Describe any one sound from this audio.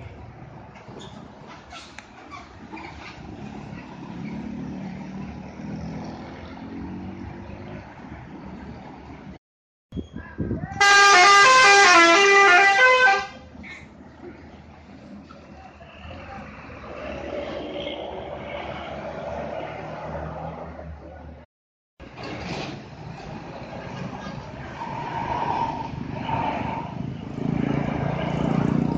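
A bus engine rumbles as the bus drives around a bend.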